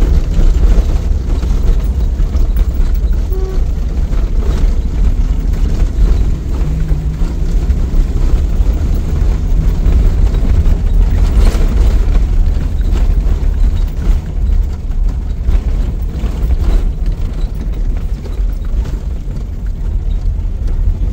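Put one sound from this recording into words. Tyres crunch and bump over a rough dirt track.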